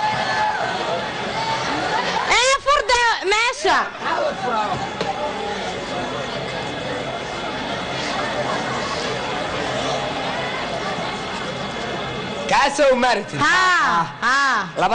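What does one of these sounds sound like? A live band plays music through loudspeakers.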